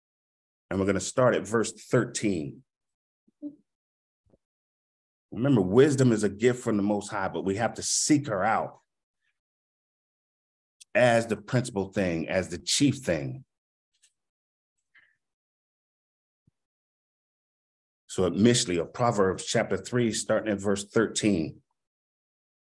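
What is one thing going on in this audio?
A man speaks calmly into a close microphone, in bursts with long pauses.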